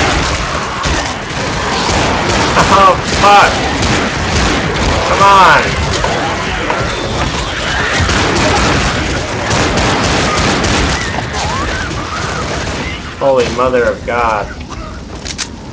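Gunshots fire rapidly.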